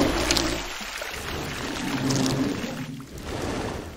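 A huge beast growls deeply.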